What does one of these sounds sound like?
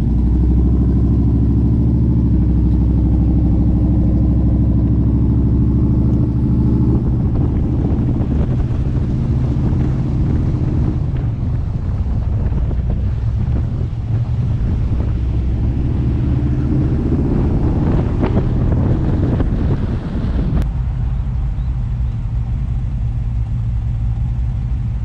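A car engine rumbles steadily at low speed.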